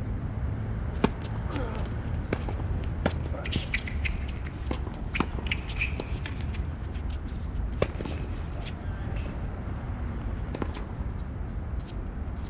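Rackets strike a ball back and forth in a rally.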